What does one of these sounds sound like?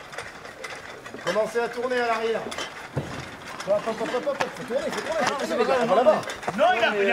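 Metal tent poles clank.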